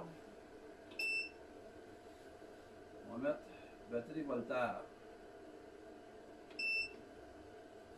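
An electronic charger beeps briefly.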